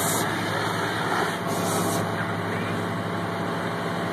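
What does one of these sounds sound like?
Water sprays hard from a fire hose.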